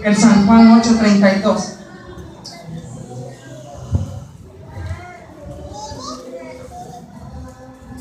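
A woman speaks with feeling through a microphone and loudspeakers.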